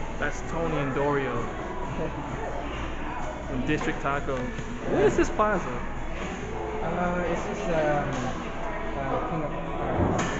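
A man talks close by, laughing now and then.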